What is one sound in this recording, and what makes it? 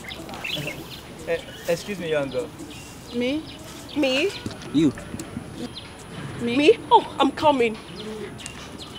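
A second young woman answers, close by.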